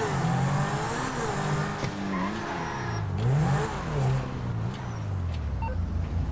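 A sports car engine revs up and down as the car speeds along.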